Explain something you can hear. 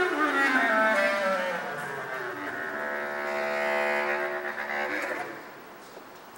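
A bass clarinet plays a low, gliding melody close by, echoing slightly.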